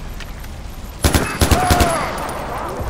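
Gunshots ring out in quick succession.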